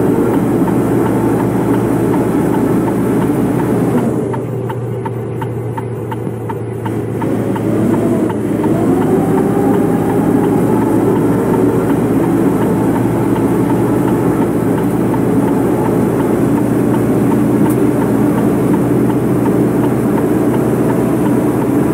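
A heavy bus engine drones steadily, dipping and then rising as it speeds up.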